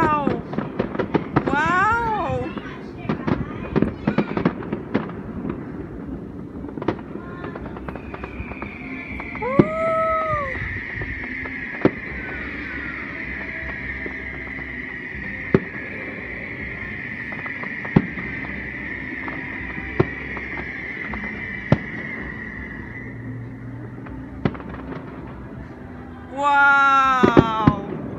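Fireworks bang and pop in the distance.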